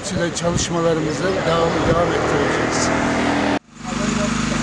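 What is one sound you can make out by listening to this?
A middle-aged man speaks calmly and close by, outdoors.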